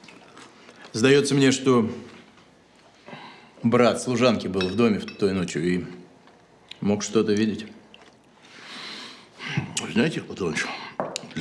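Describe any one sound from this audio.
A man speaks calmly and thoughtfully.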